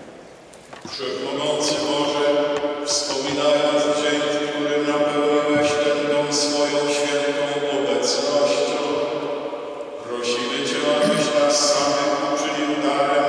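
An elderly man chants in a steady, sung voice through a microphone.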